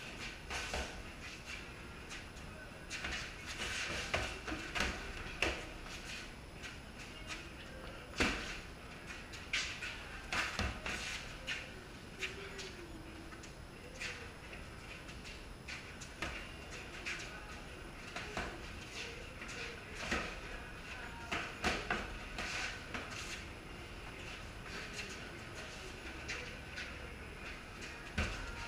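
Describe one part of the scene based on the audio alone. Boxing gloves thump against punch mitts in quick bursts.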